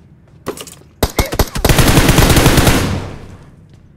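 Rapid gunshots ring out in quick bursts.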